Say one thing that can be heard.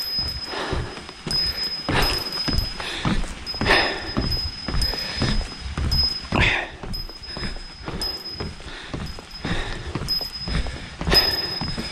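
Footsteps thud on wooden steps.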